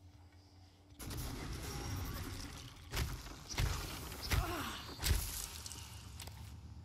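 Heavy blows thud and crash as a creature is fought off.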